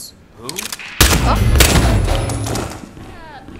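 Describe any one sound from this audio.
A pistol fires a muffled shot.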